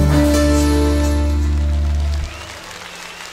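A band plays a loud final chord through a hall sound system.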